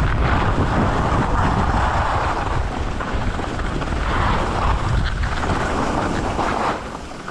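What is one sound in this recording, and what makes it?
Wind rushes past the microphone outdoors.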